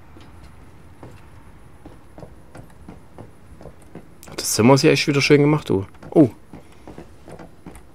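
Footsteps knock on a wooden floor.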